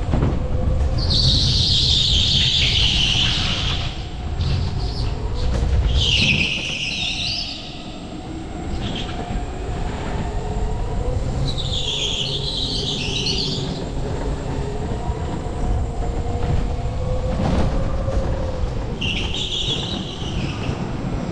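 Go-kart tyres squeal on the floor in the turns.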